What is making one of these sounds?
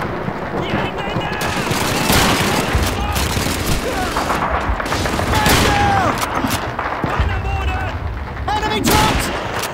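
Gunshots crack and boom nearby.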